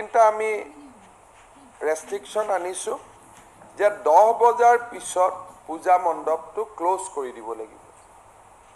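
A man speaks steadily into microphones, pausing between phrases.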